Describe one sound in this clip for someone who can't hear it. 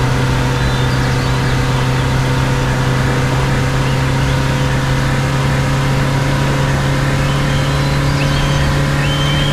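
A diesel engine hums steadily.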